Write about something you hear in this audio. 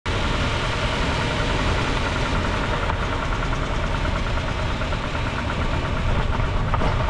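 A car's drive shaft spins with a steady whirring rumble.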